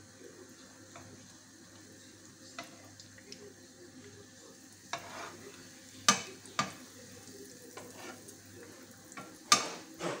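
A metal utensil clinks against a pan.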